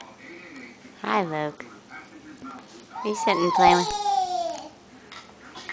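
A baby squeals loudly.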